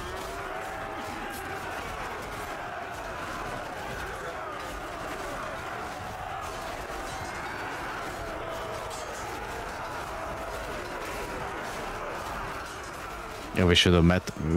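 Many swords and shields clash in a large battle.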